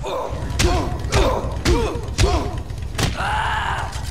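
Punches land with heavy thuds.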